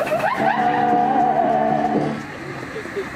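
A steam engine whistle blows loudly and steadily.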